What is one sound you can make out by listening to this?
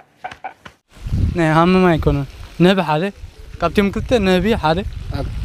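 Another young man answers into a microphone.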